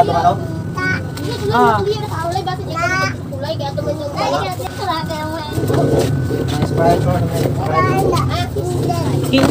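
A plastic bag crinkles in a young woman's hands.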